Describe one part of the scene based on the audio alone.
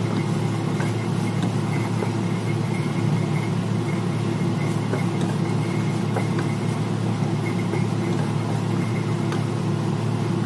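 A wooden spatula scrapes and stirs food in a frying pan.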